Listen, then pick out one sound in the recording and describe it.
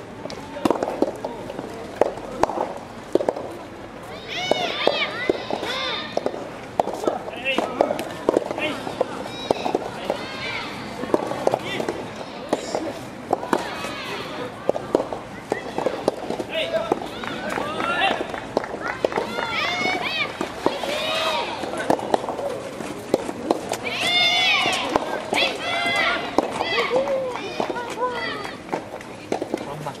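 Soft tennis rackets hit a rubber ball back and forth outdoors.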